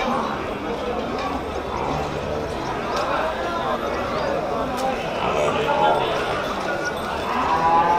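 Several men talk in the distance outdoors.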